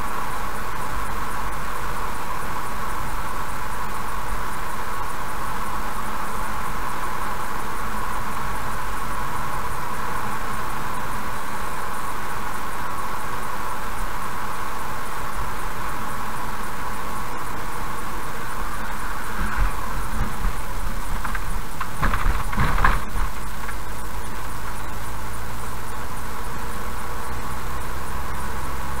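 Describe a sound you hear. Tyres roll steadily on an asphalt road.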